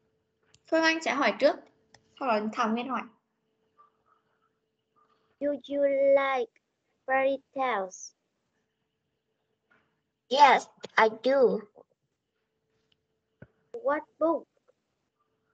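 A woman speaks in short phrases through an online call.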